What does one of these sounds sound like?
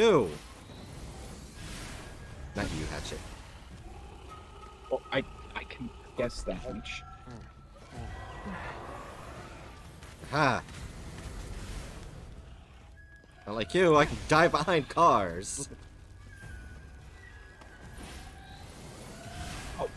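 Fiery blasts whoosh and crackle in bursts.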